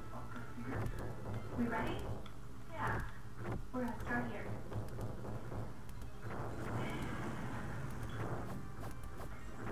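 Fireballs burst with loud, booming explosions.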